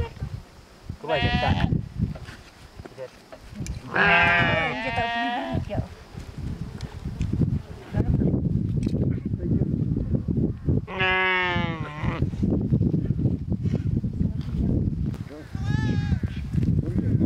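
Sheep and goats bleat loudly nearby.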